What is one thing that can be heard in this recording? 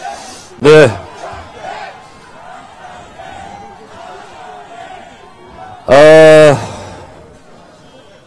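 A middle-aged man speaks with animation into a microphone, heard through a loudspeaker.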